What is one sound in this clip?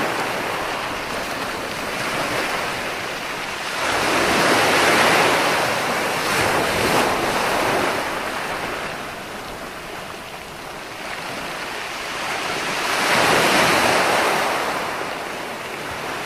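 Ocean waves roll in and crash onto the shore, rising and falling in surges.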